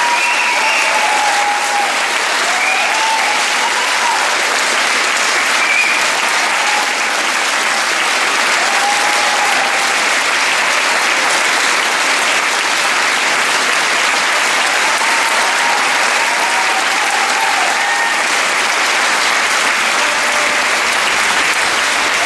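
A large audience claps steadily in an echoing hall.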